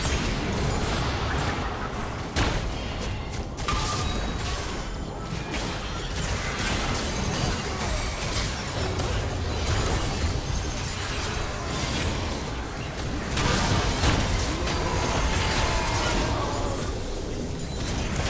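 Game spell effects crackle and blast in a busy battle.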